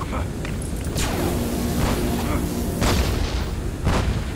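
Laser zaps crackle in bursts.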